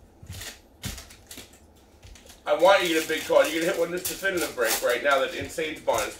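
A plastic card wrapper crinkles as it is torn open.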